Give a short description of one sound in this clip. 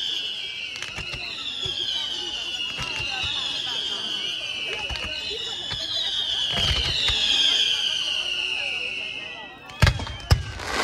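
Fireworks whistle shrilly as they shoot into the sky.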